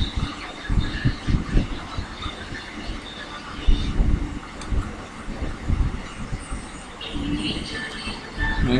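Small metal tools click and scrape against plastic parts.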